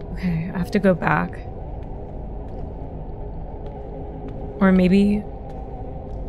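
A young woman speaks close to a microphone in short bursts.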